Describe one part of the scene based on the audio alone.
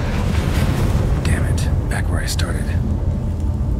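A man mutters in a low, gruff voice.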